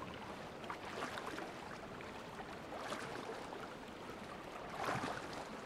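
Water splashes as a swimmer paddles through waves.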